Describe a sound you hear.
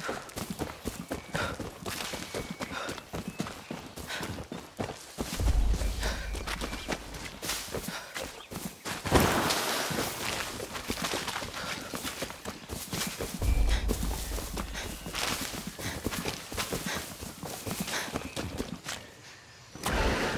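Footsteps crunch on dirt and stone.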